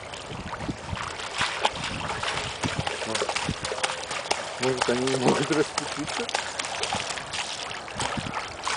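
A bird splashes and flaps its wings in water close by.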